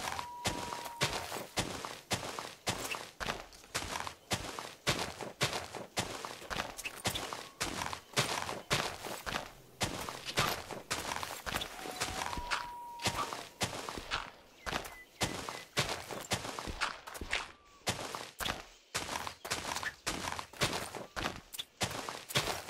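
Blocks of dirt and snow crunch as they are dug and broken in a quick, steady rhythm.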